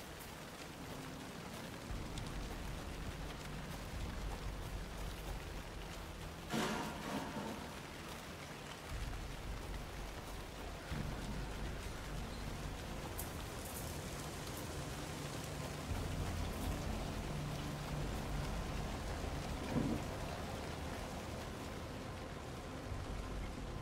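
Footsteps crunch slowly through leaves and brush.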